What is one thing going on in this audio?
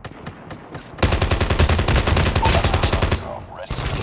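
Rapid gunfire rattles loudly and close.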